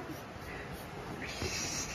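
A young girl kisses a baby's head.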